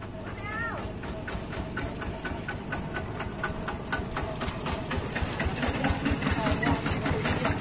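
A small tractor engine chugs steadily, growing louder as it approaches and passes close by.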